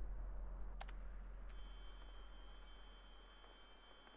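A flare hisses and burns.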